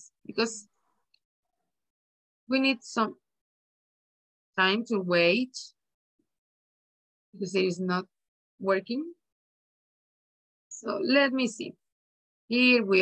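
A woman speaks with animation over an online call, in short bursts.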